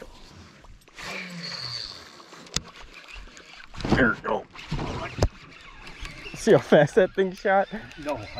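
A fishing reel clicks and whirs as its handle is cranked.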